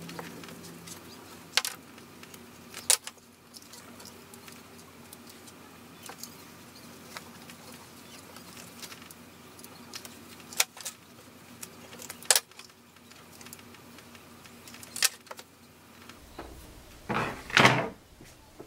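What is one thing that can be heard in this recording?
Cardboard rustles and scrapes as it is handled.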